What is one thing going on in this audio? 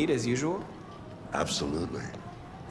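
A young man answers briefly and calmly.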